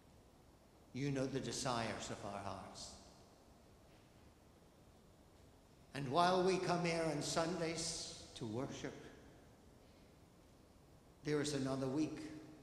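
An elderly man speaks slowly and calmly into a microphone, with pauses, in a reverberant hall.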